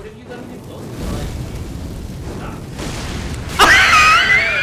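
Flames burst and roar.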